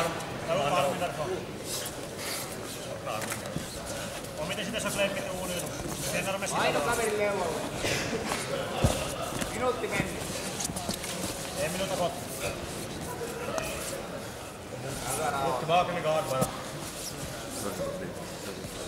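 A crowd of men shouts and cheers in a large echoing hall.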